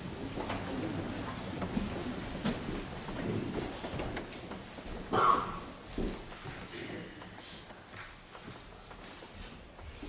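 Footsteps and knocks sound on a wooden floor.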